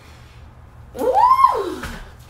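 A woman lets out a long, rising and falling cry.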